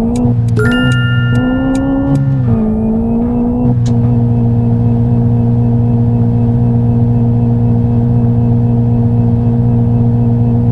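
A car engine drones steadily as it speeds up.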